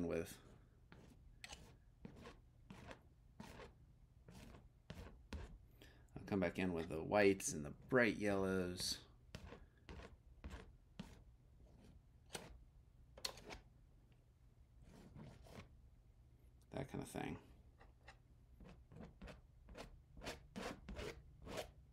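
A palette knife taps and scrapes on a canvas.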